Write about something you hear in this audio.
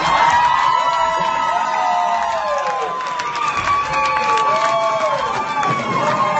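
A crowd cheers loudly in a large room.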